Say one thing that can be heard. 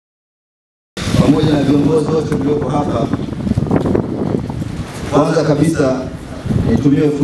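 A man speaks loudly into a microphone, his voice carried outdoors over loudspeakers.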